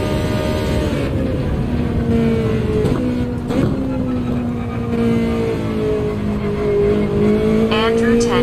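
A racing car engine drops in pitch as the car brakes and downshifts.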